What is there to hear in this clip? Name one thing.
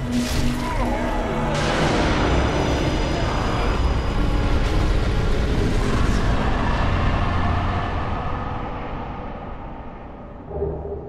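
Flames roar and crackle loudly, then slowly fade away.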